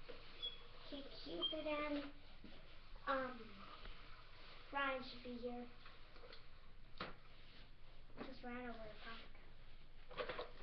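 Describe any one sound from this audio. A young child chatters in a high voice nearby.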